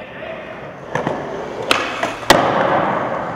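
A skateboard clacks sharply against the floor.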